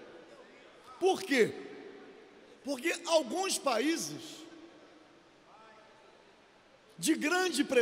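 An older man speaks forcefully into a microphone in a large echoing hall, in short bursts with pauses.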